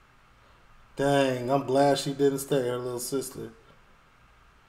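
A man speaks briefly and calmly close to a microphone.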